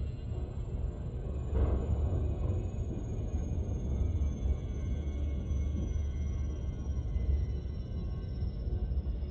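A spacecraft engine rumbles low and steady.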